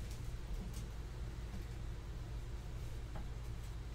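A plastic sleeve crinkles.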